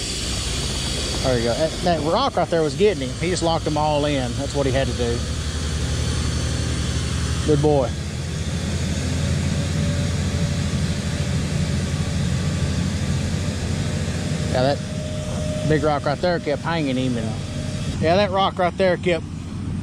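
A cement mixer truck's diesel engine rumbles steadily nearby.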